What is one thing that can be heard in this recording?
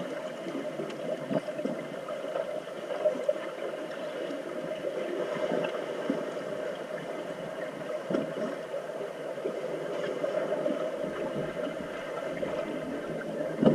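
Air bubbles gurgle up through the water.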